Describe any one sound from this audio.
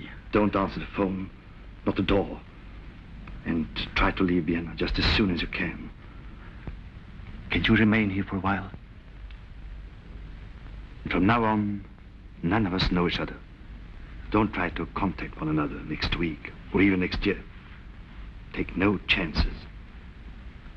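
Middle-aged men talk in turns, heard through a thin, old-sounding soundtrack.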